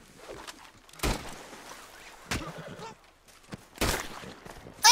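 Gunshots bang several times.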